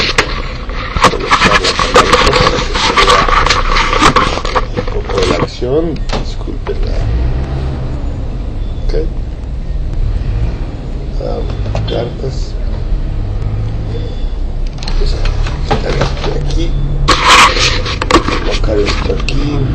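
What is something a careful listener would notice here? Handling noise rubs and knocks loudly against a phone's microphone.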